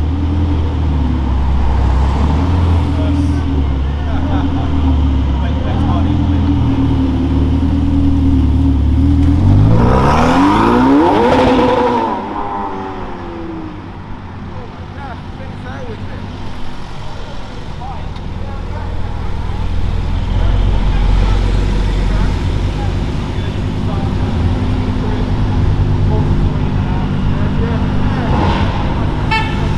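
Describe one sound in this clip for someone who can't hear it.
A sports car engine rumbles low and steady while rolling slowly in traffic.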